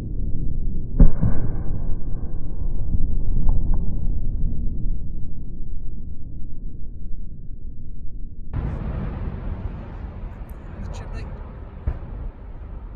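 Fireworks boom and crackle in the distance.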